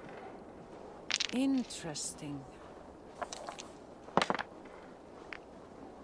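Dice rattle and clack as they are rolled in a wooden bowl.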